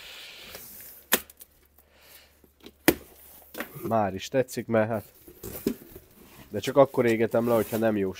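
Cardboard flaps rustle and thump as a box is opened.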